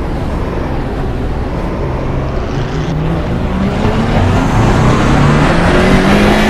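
A race car engine roars and revs higher as the car accelerates.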